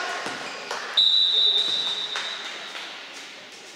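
A referee's whistle blows a sharp, steady blast.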